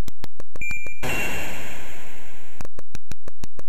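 A retro video game sounds a short hissing burst of noise.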